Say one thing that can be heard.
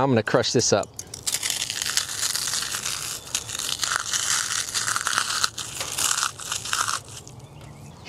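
Charred material crumbles and crackles between fingers.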